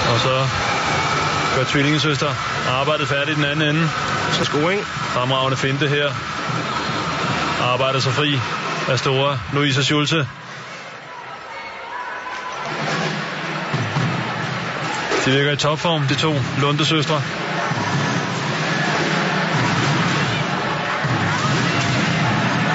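A large crowd cheers and claps in a big echoing arena.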